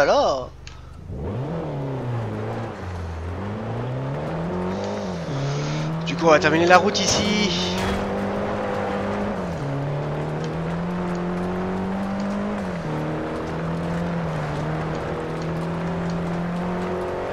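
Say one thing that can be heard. A car engine revs and climbs through the gears.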